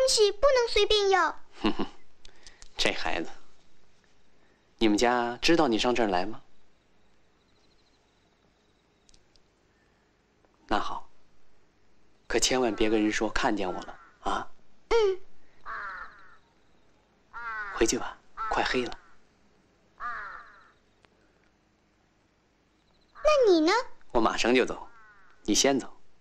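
A young girl speaks softly and close by.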